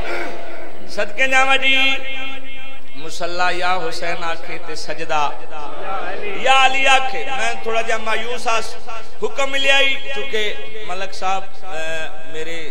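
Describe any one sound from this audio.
A man chants a lament loudly through a microphone.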